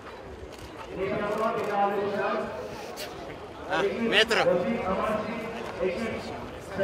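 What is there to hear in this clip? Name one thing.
A man talks cheerfully close by.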